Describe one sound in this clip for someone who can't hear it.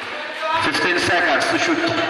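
A basketball bounces on a concrete court.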